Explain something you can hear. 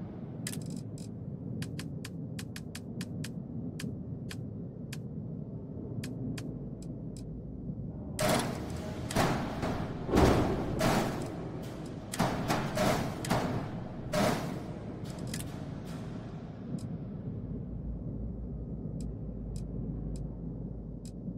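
Short soft clicks sound now and then as menu items are selected.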